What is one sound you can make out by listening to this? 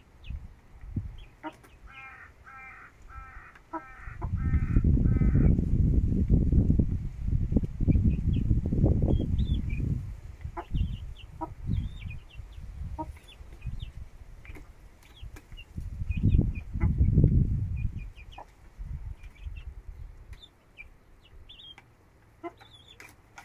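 A chicken pecks at food in a dish with quick taps.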